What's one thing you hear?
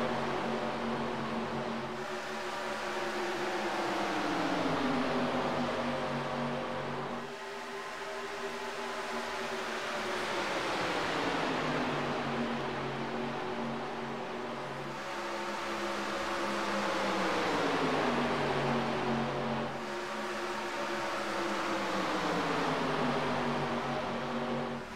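Race car engines roar loudly, their pitch falling as they sweep past.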